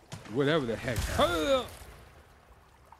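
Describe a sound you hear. Something plunges into water with a heavy splash.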